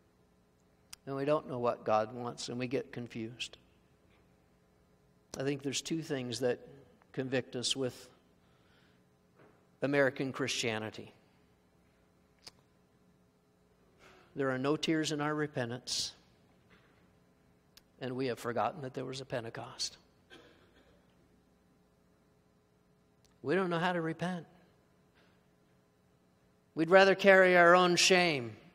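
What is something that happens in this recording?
A man speaks calmly into a microphone, in phrases with pauses.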